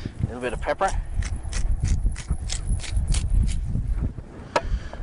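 A pepper mill grinds with quick rasping clicks.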